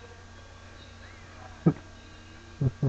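A hand slaps against a wall.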